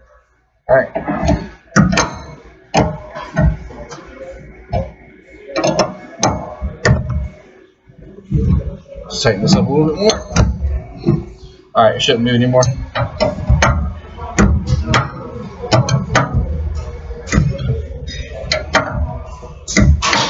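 Metal tools clink and scrape against a wheel hub.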